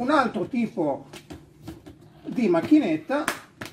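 A plastic case lid closes with a thud.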